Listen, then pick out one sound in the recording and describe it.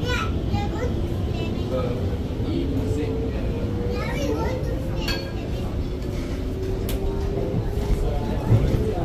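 A train's motor whines, rising slowly in pitch.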